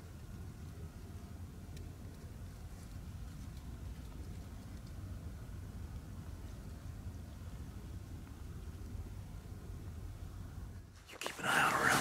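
Wind rumbles low and steady across the microphone outdoors.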